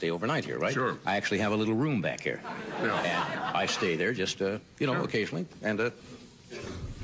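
An older man speaks calmly and clearly into a microphone.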